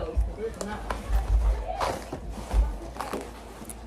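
A folder is set down on a table with a thud.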